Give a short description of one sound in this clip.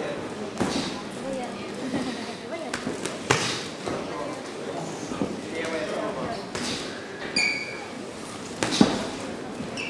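Gloves thud sharply as boxers trade punches.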